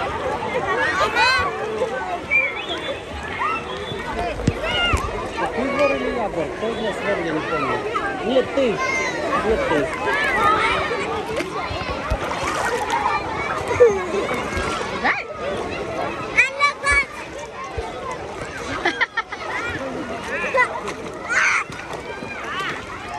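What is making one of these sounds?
Many children shout and chatter in a busy outdoor pool.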